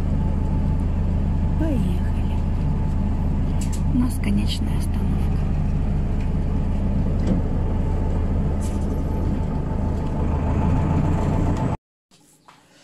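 A bus engine drones steadily from inside the vehicle.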